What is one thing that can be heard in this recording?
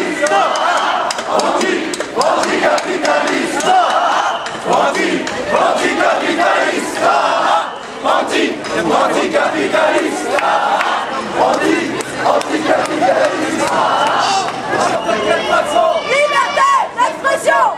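A crowd of marchers chants and talks loudly outdoors.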